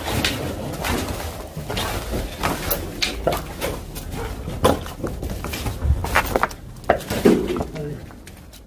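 Footsteps crunch over rubble and debris.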